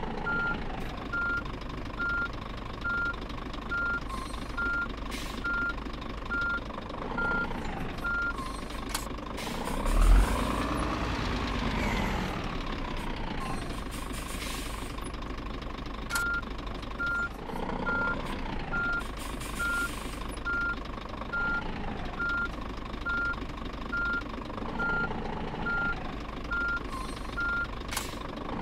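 A truck's reversing alarm beeps.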